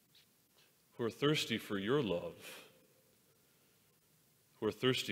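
A man speaks slowly and calmly through a microphone in a large echoing hall.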